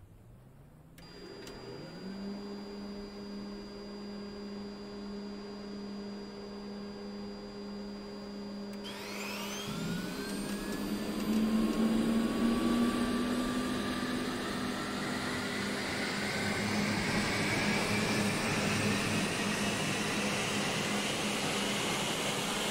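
A jet engine whines and roars as it spools up, rising steadily in pitch.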